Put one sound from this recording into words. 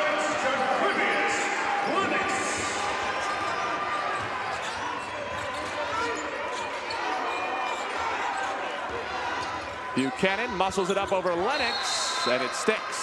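A large crowd cheers and shouts in an echoing arena.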